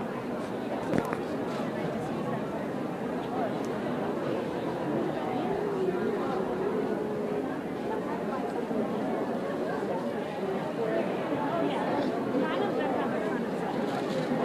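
A crowd of people chatter nearby in a busy indoor space.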